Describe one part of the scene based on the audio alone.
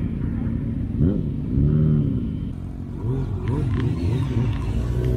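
A motorcycle passes close by.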